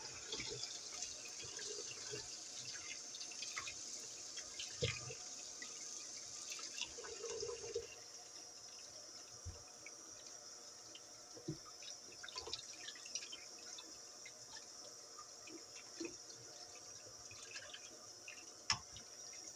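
Wet meat squelches and slaps as a hand rinses it in water.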